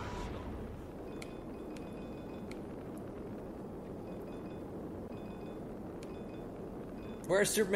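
Short bright chimes ring as small items are picked up.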